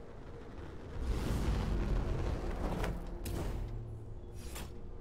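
Jet thrusters roar as a flying figure lands.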